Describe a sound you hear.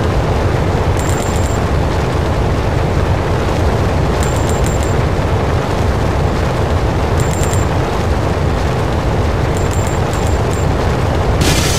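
Coins chime quickly in short bursts as they are collected.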